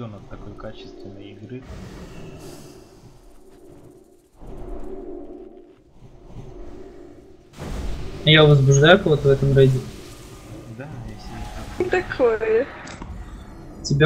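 Magic spells crackle and whoosh in a battle.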